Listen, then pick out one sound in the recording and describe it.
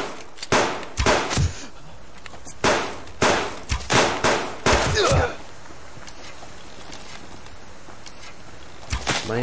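A bowstring twangs sharply as arrows are loosed, again and again.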